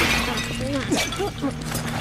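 A heavy blow lands with a thud.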